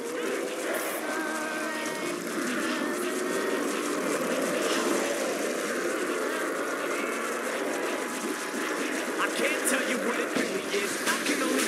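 A zombie growls and moans nearby.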